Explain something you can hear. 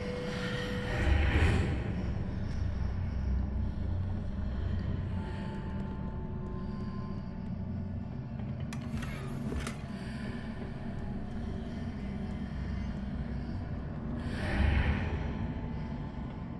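A magic spell bursts with a loud shimmering whoosh.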